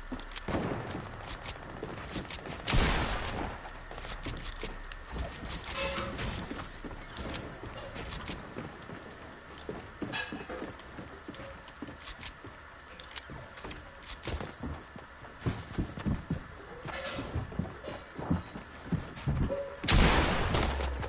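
Footsteps patter quickly on hard floors.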